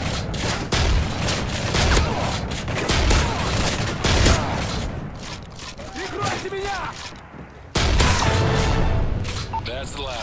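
Gunfire bursts loudly and rapidly.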